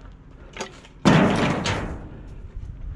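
A bundle drops into a metal bin with a thud.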